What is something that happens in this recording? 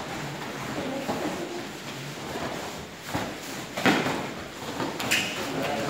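Bare feet shuffle and thud on a padded mat.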